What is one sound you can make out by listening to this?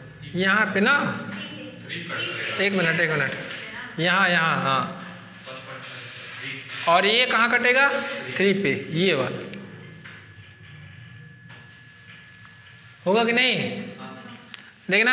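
A young man explains calmly, close by.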